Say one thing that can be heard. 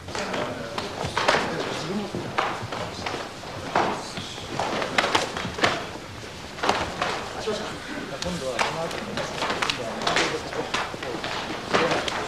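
Bare feet stamp and shuffle on a mat.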